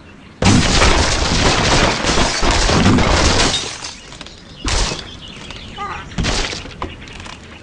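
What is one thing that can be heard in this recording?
Wooden blocks crash and tumble down.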